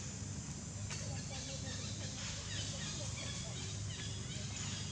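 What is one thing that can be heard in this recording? A baby monkey squeals.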